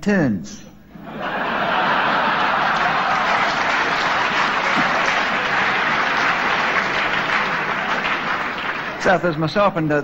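A large crowd laughs loudly.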